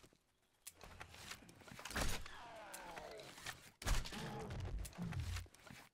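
A crossbow snaps as it fires a bolt.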